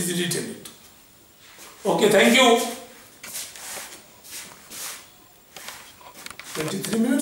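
An elderly man lectures in a calm, explanatory voice nearby.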